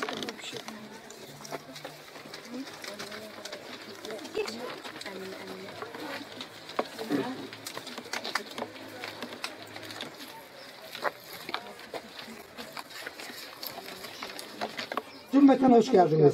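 A group of women murmur and chat quietly.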